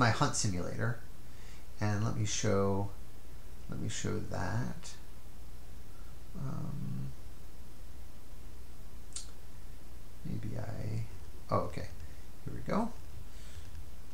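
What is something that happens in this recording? A man speaks calmly and close to a microphone, pausing often.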